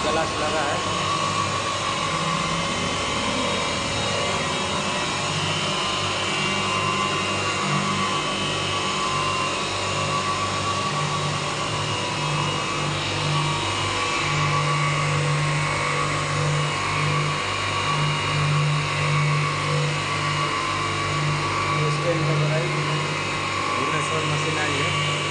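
Diamond wheels grind the edge of glass under a spray of water.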